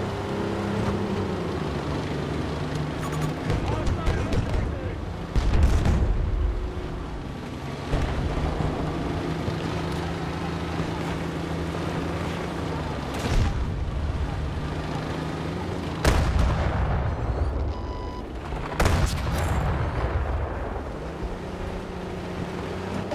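A tank engine rumbles and clanks steadily.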